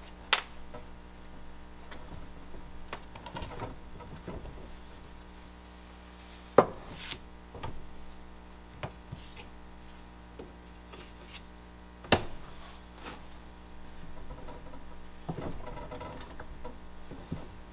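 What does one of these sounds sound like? A wooden rolling pin rolls over clay with a soft rumble.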